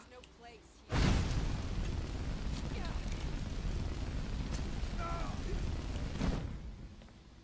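A fire spell roars in a burst of flames.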